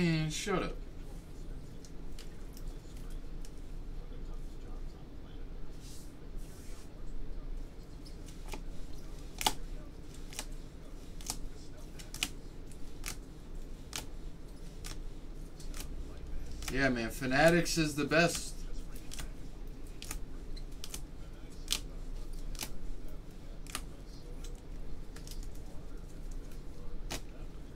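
Plastic card holders click and tap as they are handled.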